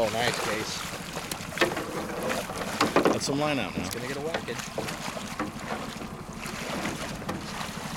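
Water splashes as a fish thrashes at the surface.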